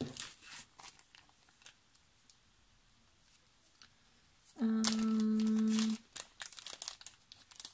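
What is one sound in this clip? A plastic packet crinkles between fingers.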